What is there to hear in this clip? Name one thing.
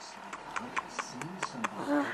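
A baby coos and babbles happily close by.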